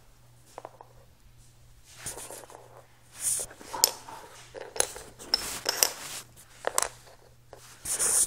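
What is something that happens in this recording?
Plastic toy pieces click and clatter against a hard floor.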